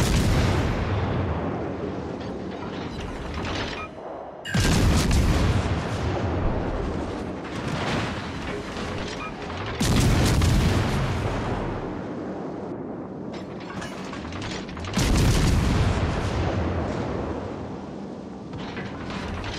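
Heavy naval guns fire in loud booming salvos.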